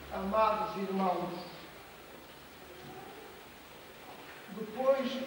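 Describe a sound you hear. An elderly man reads aloud slowly and solemnly in a room with a slight echo.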